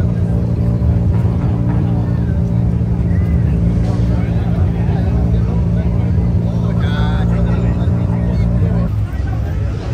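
A car engine idles and revs loudly nearby.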